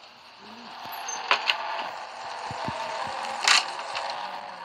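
A door opens with a knock.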